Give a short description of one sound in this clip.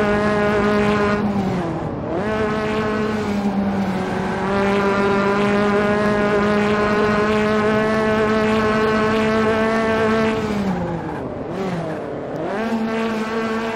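A racing car engine winds down sharply as it slows for corners, then picks up again.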